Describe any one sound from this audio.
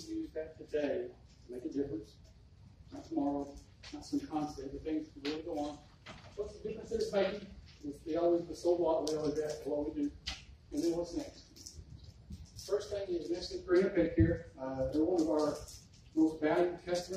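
A middle-aged man speaks steadily in a small room.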